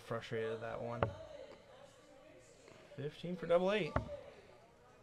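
A dart thuds into a dartboard.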